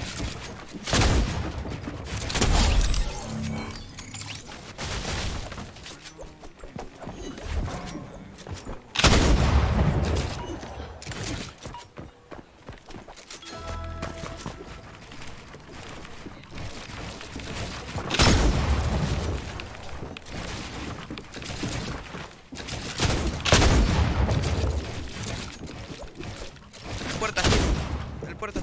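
Loud gunshots bang out in short bursts.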